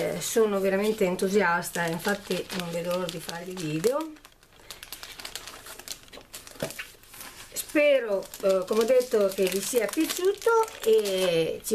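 A stiff sheet of paper rustles and flaps as it is handled.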